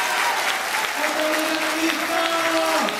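A group of young voices sings together in a large hall.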